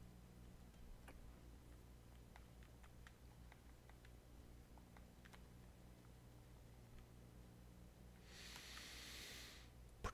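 Soft menu clicks tick as items are selected.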